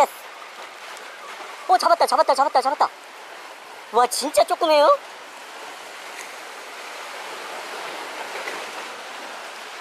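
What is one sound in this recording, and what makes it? Waves splash softly against rocks.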